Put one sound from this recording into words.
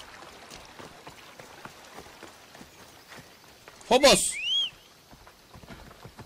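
A horse's hooves clop steadily on dry ground.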